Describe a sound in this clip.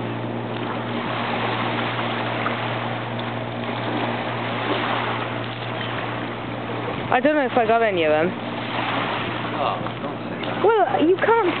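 Gentle waves lap on a pebble shore outdoors.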